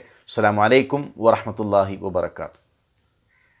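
A man speaks calmly and slowly close to a microphone.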